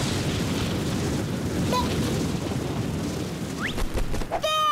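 Air rushes past in a loud, steady whoosh.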